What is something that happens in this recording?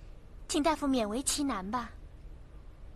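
A young woman speaks softly and pleadingly.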